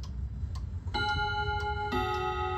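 A clock chimes with ringing tones.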